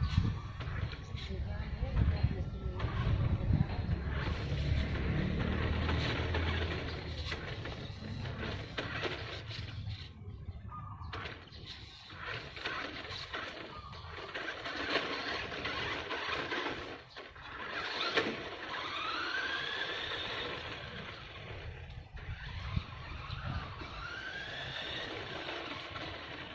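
A small electric motor whines as a toy truck drives.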